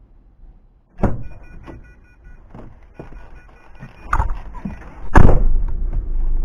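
Heavy knocks and thumps sound close by.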